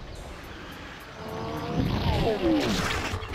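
Rocks crash and tumble loudly.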